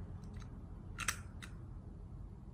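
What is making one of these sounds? A metal toy revolver clicks as it is handled.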